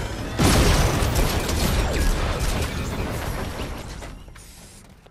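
Loud blasts rumble and crackle with heavy booming.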